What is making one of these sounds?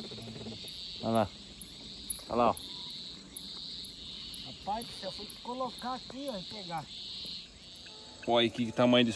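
A man speaks nearby in short bursts.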